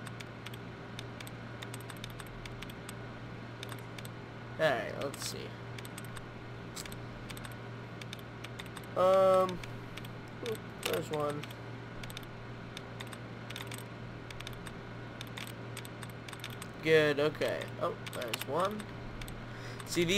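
A computer terminal gives soft, quick clicks as the cursor moves.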